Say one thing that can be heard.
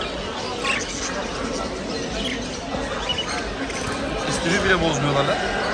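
Many budgerigars chirp and chatter.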